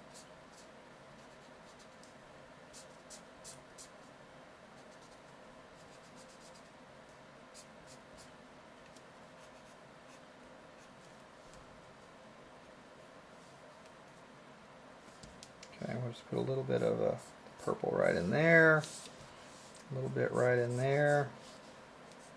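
A felt-tip marker squeaks and scratches softly on paper.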